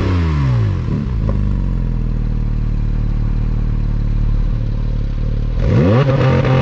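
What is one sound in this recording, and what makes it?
A sports car engine idles with a low rumble.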